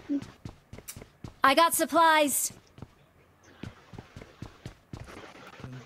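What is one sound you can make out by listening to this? Footsteps thud quickly on a hard floor and stairs.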